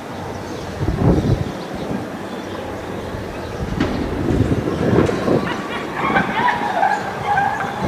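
A car engine hums as a vehicle drives slowly closer.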